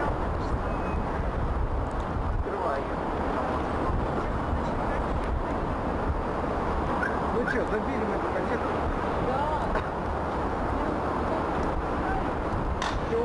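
A crowd of passers-by murmurs in a busy street.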